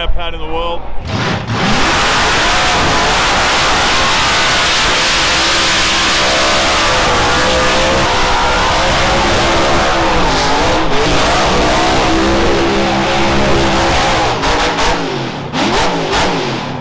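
Tyres squeal and screech as a car spins its wheels.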